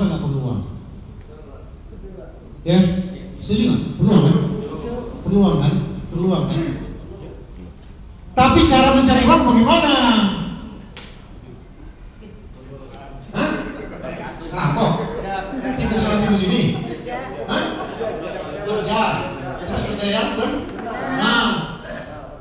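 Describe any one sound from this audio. An elderly man speaks with animation into a microphone, heard through a loudspeaker in an echoing hall.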